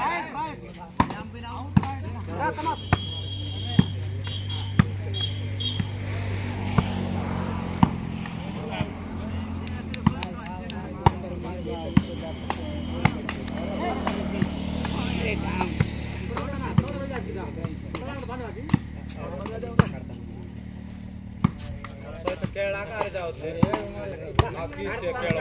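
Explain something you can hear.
A ball is struck by hands again and again with sharp slaps.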